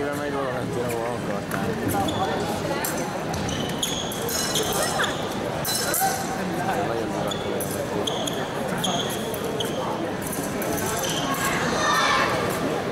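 Fencers' feet stamp and shuffle on the piste.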